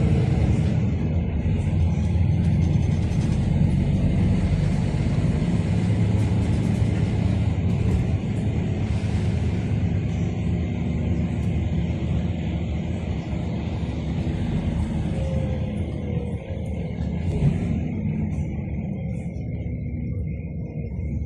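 A car engine hums steadily from inside a moving vehicle.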